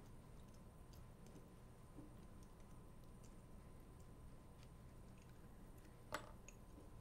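Small metal tools tick and click faintly against watch parts.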